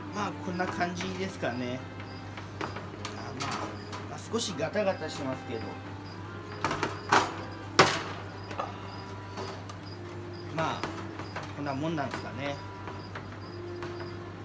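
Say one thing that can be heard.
Plastic clicks and knocks as a cage base is fitted.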